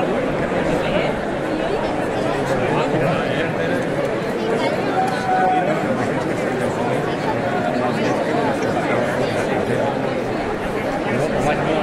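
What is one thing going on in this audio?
A large outdoor crowd chatters loudly all around.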